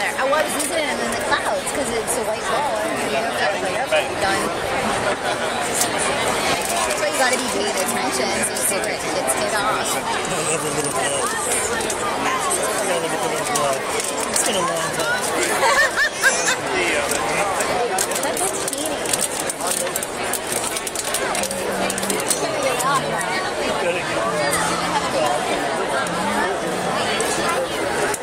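A large outdoor crowd chatters in the stands.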